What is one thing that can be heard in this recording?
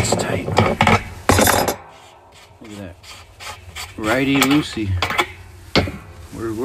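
Metal tools clank and knock against a metal drum.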